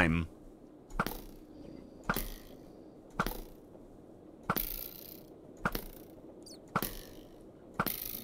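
A sword strikes a creature again and again with sharp, regular hits.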